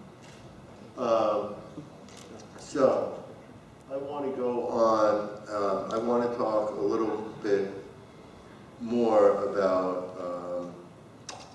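A man speaks to an audience through a microphone in a large hall.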